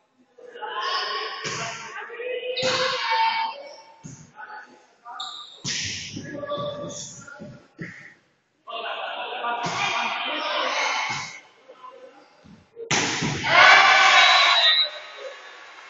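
A volleyball is hit with sharp slaps in an echoing hall.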